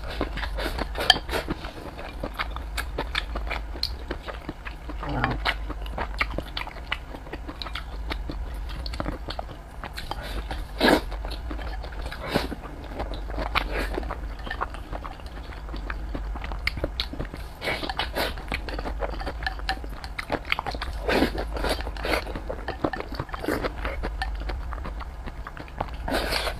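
A woman slurps and chews food close to the microphone.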